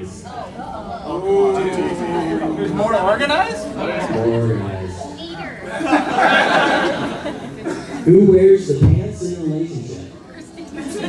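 A man speaks through a microphone over a loudspeaker in a large echoing hall.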